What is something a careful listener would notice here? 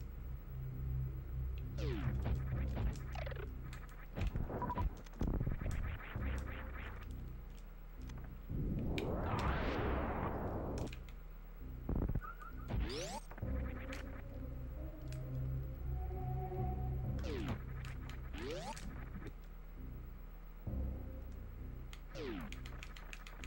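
Retro video game music and sound effects play throughout.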